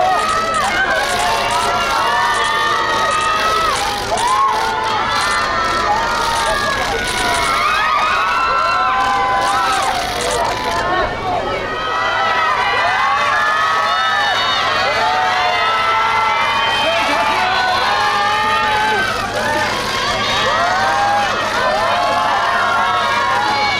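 A crowd of young women shouts and cheers excitedly nearby.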